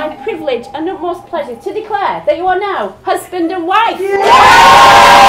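A woman speaks clearly and calmly to a small gathering.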